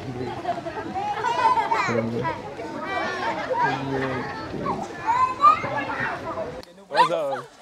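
A woman laughs and talks cheerfully outdoors.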